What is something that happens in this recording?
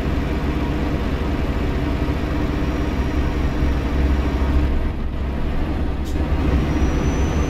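A truck engine rumbles steadily at a low pitch.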